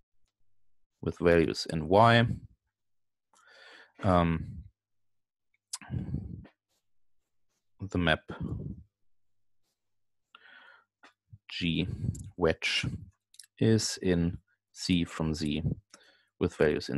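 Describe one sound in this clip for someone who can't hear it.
A man lectures calmly over an online call, pausing between phrases.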